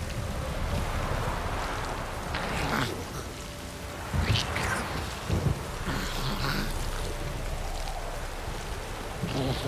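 Footsteps crunch on a path.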